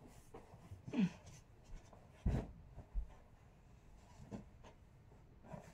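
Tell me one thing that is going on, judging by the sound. A pillow thumps and rustles softly as it is handled.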